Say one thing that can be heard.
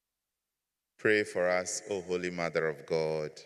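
A man speaks slowly into a microphone in an echoing hall.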